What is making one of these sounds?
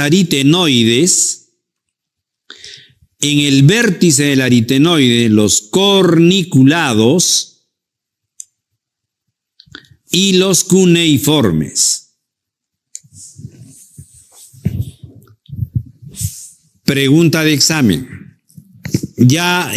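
An older man speaks calmly and steadily into a close microphone, with pauses.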